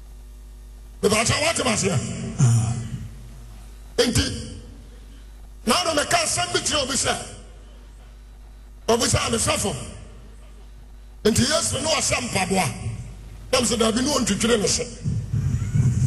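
A man preaches forcefully into a microphone in a large echoing hall, in bursts with pauses.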